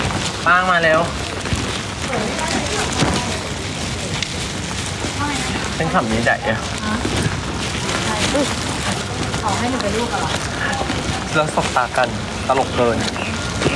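Rain patters on wet pavement.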